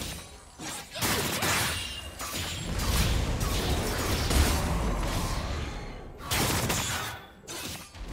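Game spell effects whoosh and blast in a fight.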